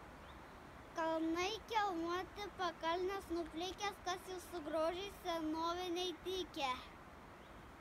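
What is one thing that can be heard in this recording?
A young child recites loudly and clearly outdoors, heard from a short distance.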